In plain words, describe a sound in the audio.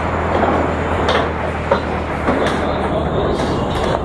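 Pool balls clack together and roll across the table.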